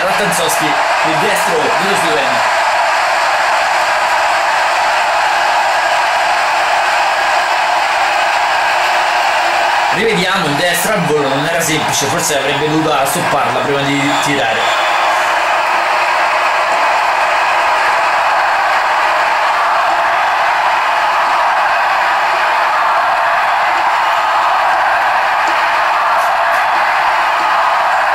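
A stadium crowd roars steadily.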